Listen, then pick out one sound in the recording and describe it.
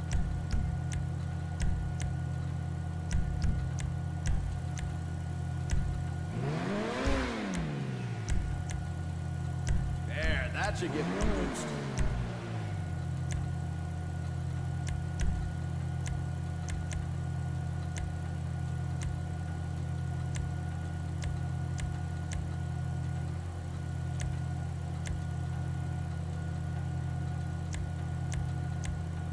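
A sports car engine idles with a steady low rumble.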